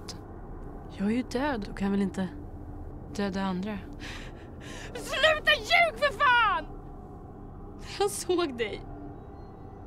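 A young woman speaks quietly and close by.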